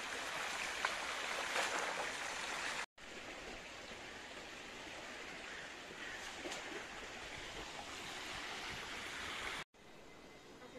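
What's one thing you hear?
Water splashes and sloshes in a pool.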